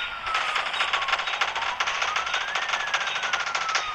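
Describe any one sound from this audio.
A heavy gun fires in rapid bursts.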